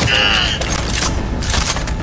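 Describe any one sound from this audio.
A pistol is reloaded with a metallic click.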